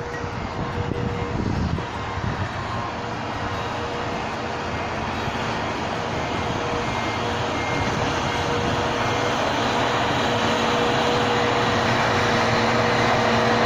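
A snowblower roars as it throws snow.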